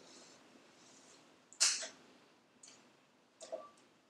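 A metal cake pan clicks as its latch is opened.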